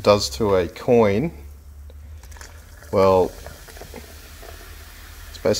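Soda pours and splashes into a plastic bucket.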